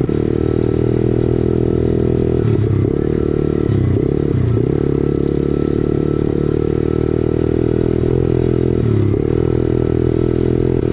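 A dirt bike engine roars loudly close by, its revs dipping and rising as gears shift.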